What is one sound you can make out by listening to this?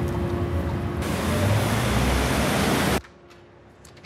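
Traffic rumbles along a busy street.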